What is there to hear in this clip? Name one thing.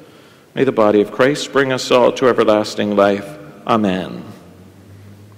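A man speaks calmly and clearly into a microphone in an echoing room.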